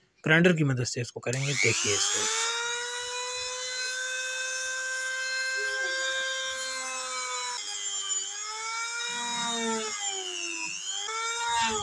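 A small rotary tool whines at high speed, dipping in pitch as it grinds into wood.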